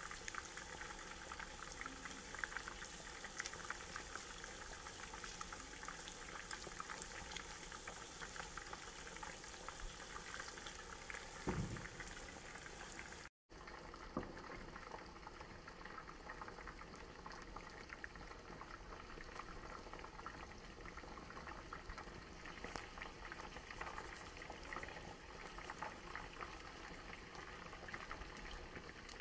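Sauce bubbles and sizzles gently in a pan.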